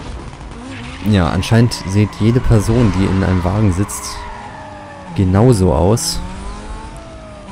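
A race car engine roars as it accelerates hard, shifting up through the gears.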